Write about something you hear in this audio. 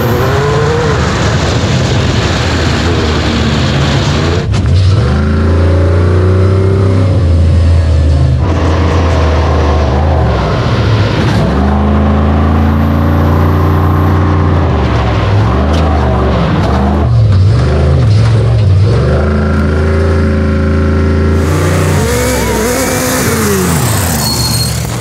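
Off-road buggy engines roar loudly at high revs.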